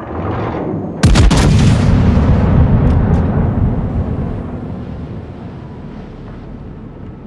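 Heavy naval guns fire a thunderous salvo that rumbles and slowly fades.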